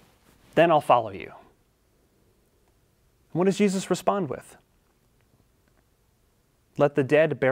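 A young man speaks calmly and clearly into a microphone, with short pauses.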